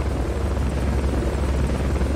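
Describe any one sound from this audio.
A helicopter's rotor thumps loudly overhead.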